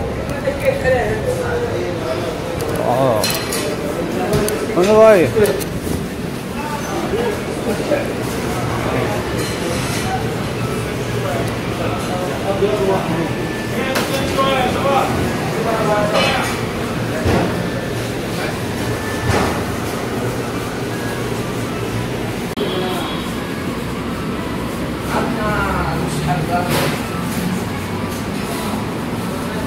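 Men talk nearby over a steady murmur of voices.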